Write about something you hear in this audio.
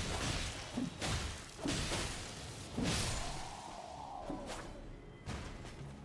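Swords clash and strike in a game fight.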